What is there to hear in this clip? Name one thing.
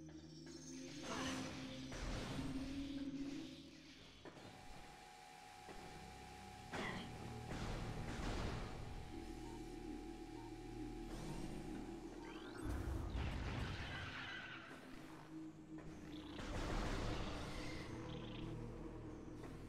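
Blasts from an arm cannon fire in short bursts.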